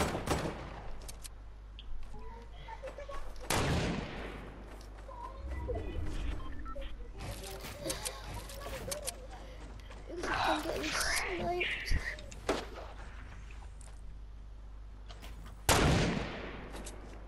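A sniper rifle fires loudly, each shot followed by a ringing echo.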